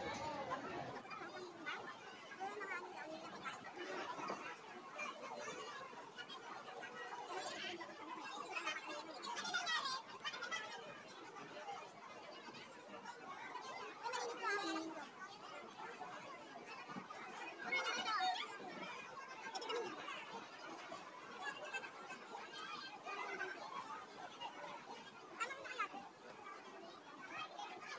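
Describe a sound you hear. A crowd of men and women chatters and shouts outdoors.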